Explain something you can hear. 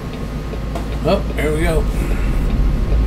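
A man speaks briefly and casually.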